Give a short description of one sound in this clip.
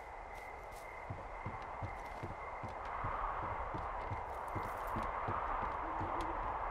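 Footsteps thud steadily on wooden stairs.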